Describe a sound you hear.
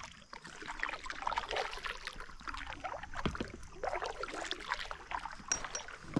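A paddle splashes and drips in calm water.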